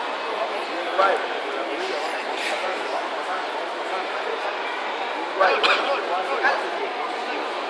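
Men in the crowd shout out encouragement now and then.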